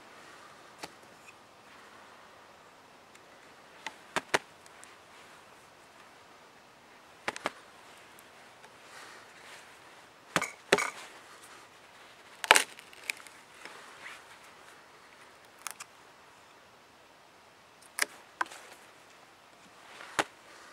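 A knife taps and scrapes against dry wood.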